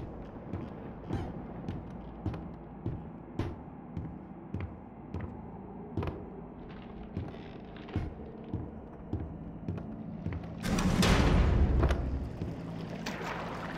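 Footsteps thud steadily on creaky wooden floorboards.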